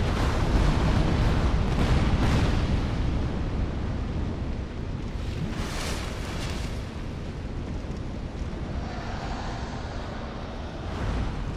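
Flames crackle and rumble steadily.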